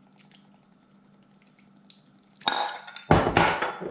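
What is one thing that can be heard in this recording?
Liquid pours into a glass jug.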